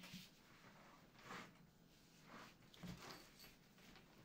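The lid of a padded case is lifted open with a soft thump.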